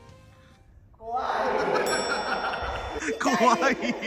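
A young man calls out with animation in an echoing hall.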